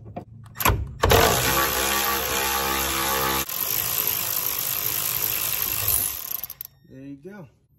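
A power ratchet whirs loudly in steady bursts.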